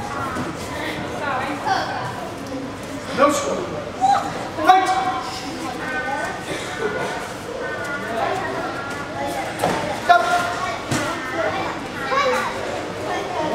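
A man shouts instructions in an echoing hall.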